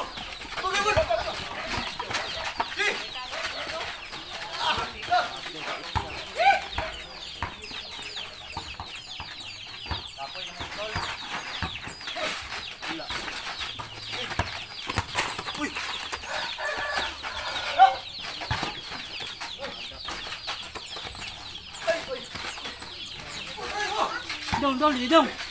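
A basketball bounces on hard dirt.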